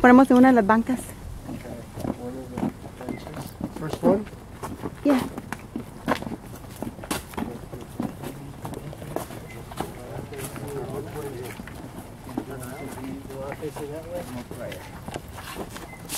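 Men and women talk quietly close by.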